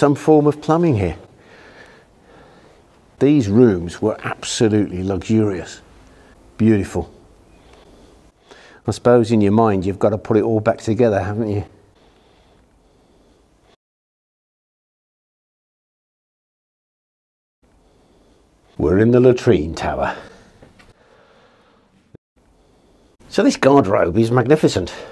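A middle-aged man talks calmly and close by, with pauses.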